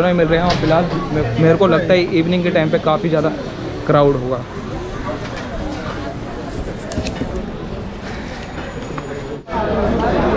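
A busy street market bustles with distant chatter.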